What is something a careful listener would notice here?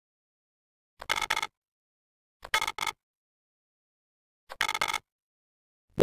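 A game countdown timer beeps a few times.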